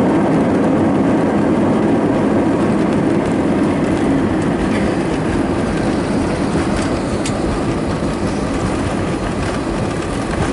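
A jet engine roars loudly and steadily close by.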